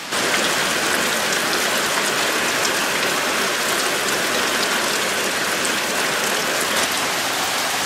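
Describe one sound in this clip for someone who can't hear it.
Water gushes from a pipe and splashes onto a wet surface.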